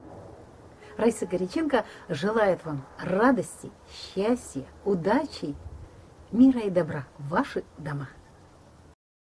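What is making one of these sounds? A middle-aged woman speaks cheerfully close to a microphone.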